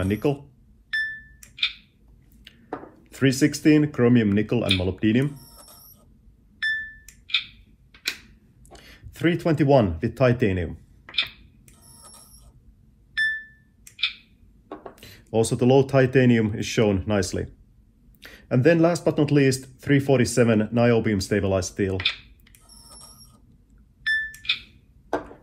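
A handheld device beeps briefly.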